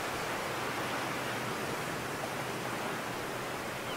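Waves wash against the shore.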